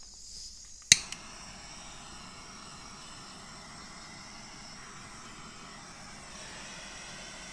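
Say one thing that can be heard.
A small gas torch hisses steadily.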